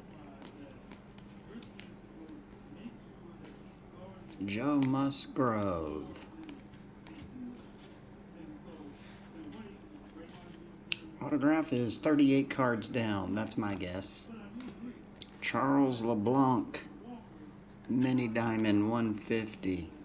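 Trading cards rustle and flick softly as they are shuffled by hand.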